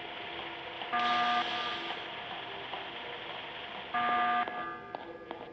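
An alarm blares in short bursts.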